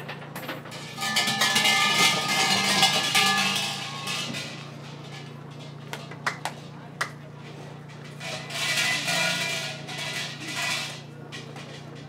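Hanging bells rattle and jangle loudly in bursts.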